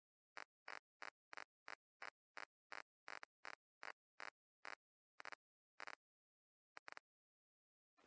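Soft menu ticks click in quick, even succession.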